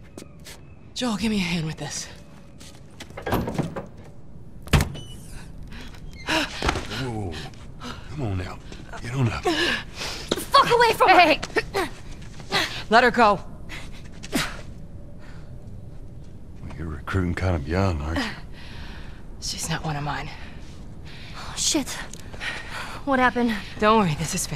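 A woman speaks urgently, close by.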